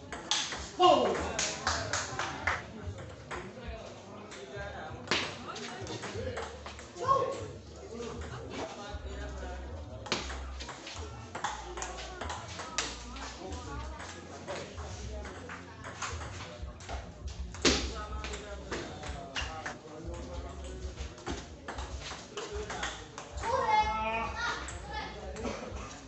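A ping pong ball clicks back and forth across a table.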